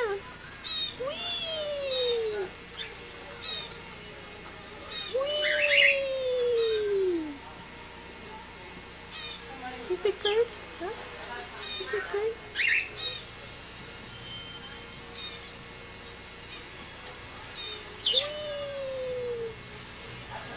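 A parrot whistles in long, falling notes.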